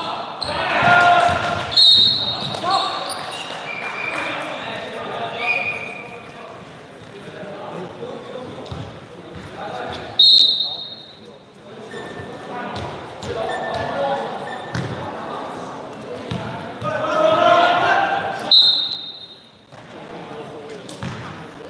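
Young men shout and call out across a large echoing hall.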